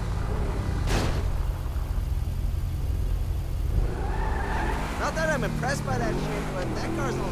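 Metal scrapes and screeches as a car grinds against another car.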